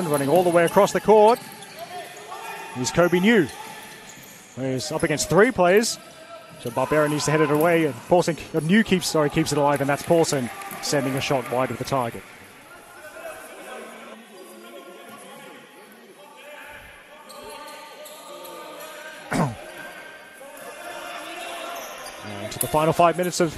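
Young players shout to each other loudly in a large echoing hall.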